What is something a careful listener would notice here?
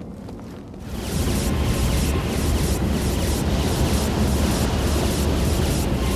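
A sword swishes through the air.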